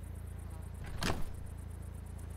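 A heavy case thuds down into a car boot.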